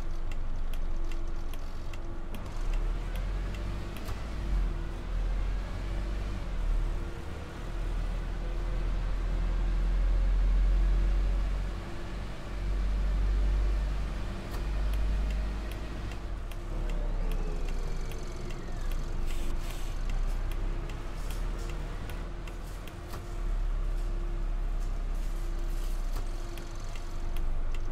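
A bus engine rumbles low and steadily as the bus drives along.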